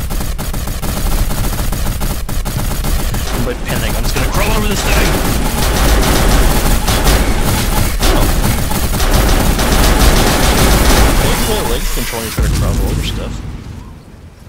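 Rapid gunfire blasts loudly and continuously.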